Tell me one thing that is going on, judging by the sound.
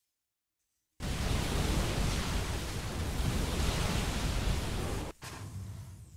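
Laser weapons fire and zap in a rapid battle.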